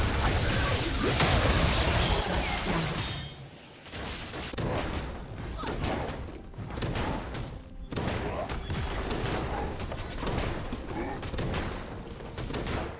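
Video game spell effects crackle and boom during a fight.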